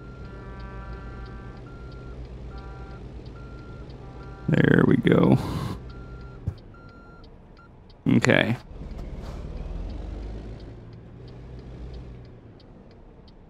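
A diesel truck engine idles with a low, steady rumble.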